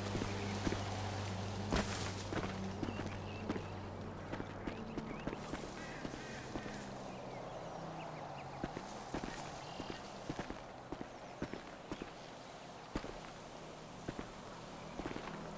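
Footsteps crunch through dry grass and leaves.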